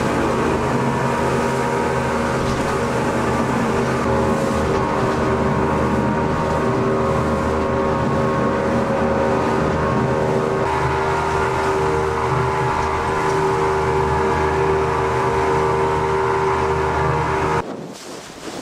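Water churns and sprays in a boat's wake.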